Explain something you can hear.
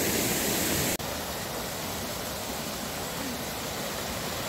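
Water rushes over a small weir.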